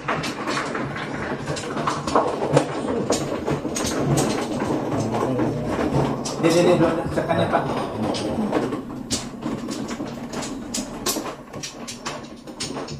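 Plastic game tiles click and clack against each other and a tabletop.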